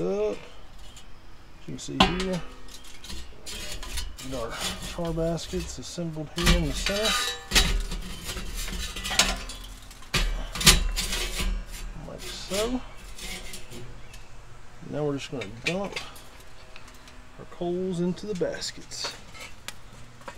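Metal tools clink and scrape against a grill grate.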